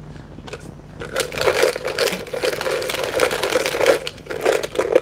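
Water sloshes in a plastic jug.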